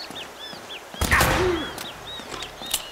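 A pistol fires a single shot that echoes off stone walls.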